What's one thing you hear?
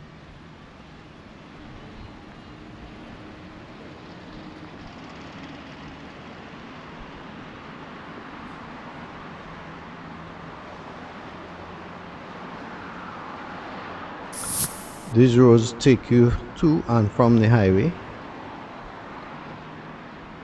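Traffic drives past on a nearby road.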